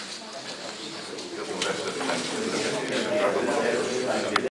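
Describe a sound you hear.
A man talks calmly a little way off.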